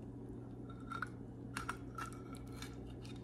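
A spatula clinks against a ceramic plate.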